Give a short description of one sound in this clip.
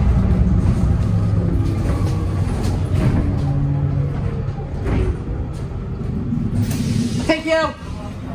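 A bus body rattles and creaks over bumps.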